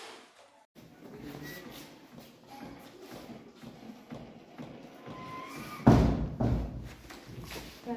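Hands press rhythmically on a plastic training manikin, with soft thumps and clicks.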